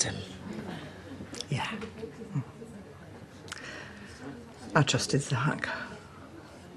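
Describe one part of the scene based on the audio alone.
An elderly woman speaks softly and earnestly, close by.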